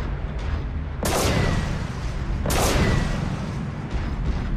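A sudden blast bursts with a loud crackle.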